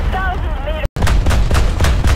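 A tank cannon fires a single loud shot.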